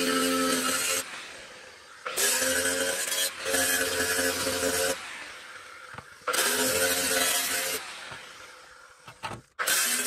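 An angle grinder grinds metal in loud, whining bursts, winding down between them.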